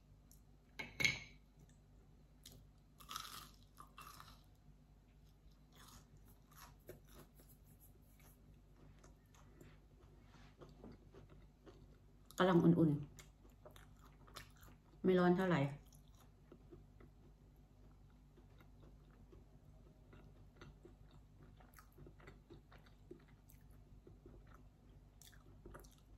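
A woman chews crispy food.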